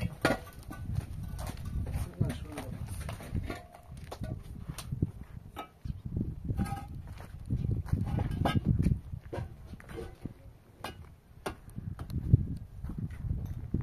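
Concrete blocks knock and scrape against each other.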